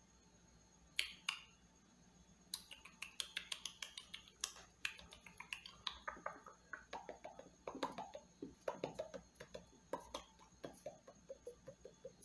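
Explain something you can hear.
Hands brush and tap close to a microphone.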